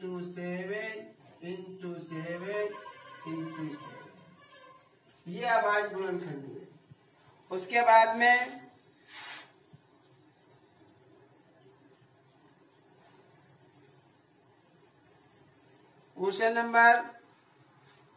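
A man speaks calmly and clearly, close by, in short bursts with pauses.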